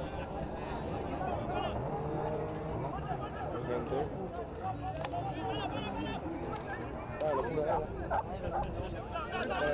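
Spectators shout and cheer outdoors from a distance.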